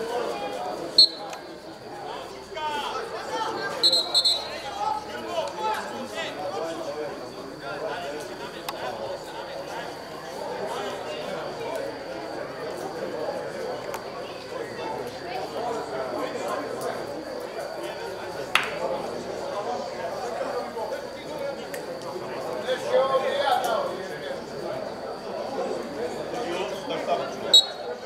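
Young men shout to each other from afar outdoors on an open field.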